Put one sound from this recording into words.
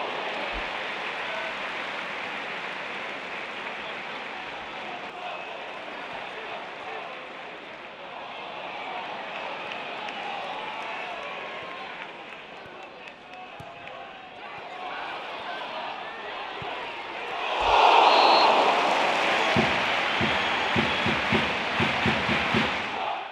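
A large crowd murmurs and chants in an open stadium.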